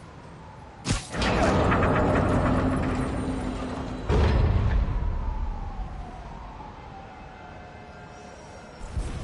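A heavy train car rumbles and clanks as it slowly turns.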